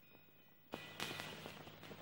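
A woman's footsteps crunch on a dirt path.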